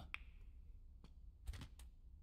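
A cue tip strikes a snooker ball.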